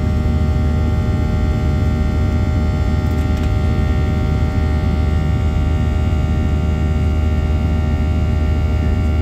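Engines whine with steady high tones.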